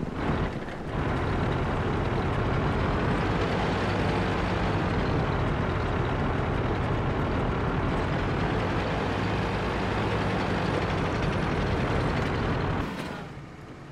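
A tank engine rumbles and clanks loudly as the tank drives.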